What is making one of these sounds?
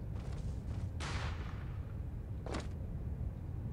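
A rifle fires in short bursts.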